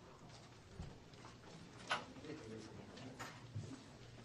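Men and women murmur and talk quietly nearby.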